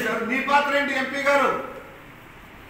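An older man speaks emphatically into microphones, close by.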